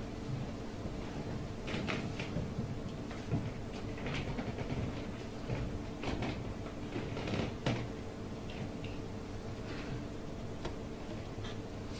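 A woman speaks calmly and quietly.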